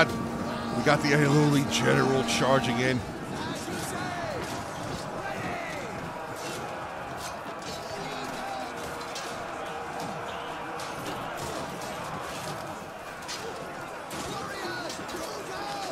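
Swords and shields clash and clang again and again.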